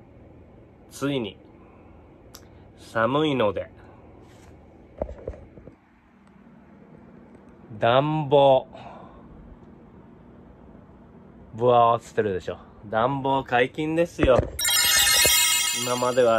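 A middle-aged man speaks with animation close to the microphone.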